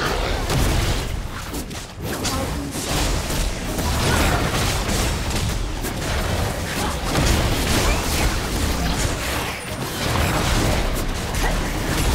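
Game combat effects crackle and boom with spell blasts and hits.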